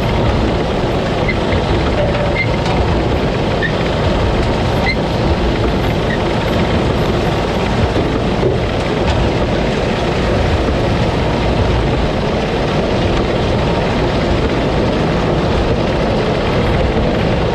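Crop stalks rustle and clatter as they are fed into a harvester.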